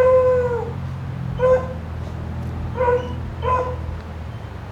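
A dog yelps in a few short, high barks nearby.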